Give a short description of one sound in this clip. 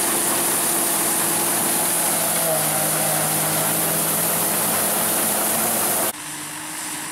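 An old combine harvester rumbles and clatters loudly as it cuts through a field.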